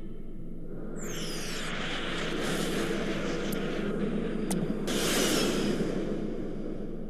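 Explosions boom and crackle in quick bursts.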